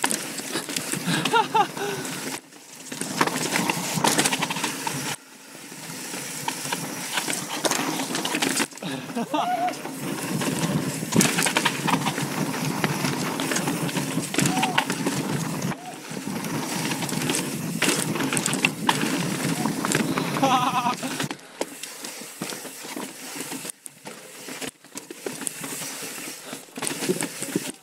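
Bicycle tyres roll and rattle over rough rock.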